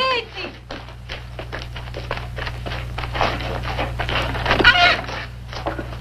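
A wooden door creaks and bangs shut.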